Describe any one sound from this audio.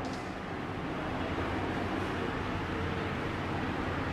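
A cloth rubs across a whiteboard with a soft swishing.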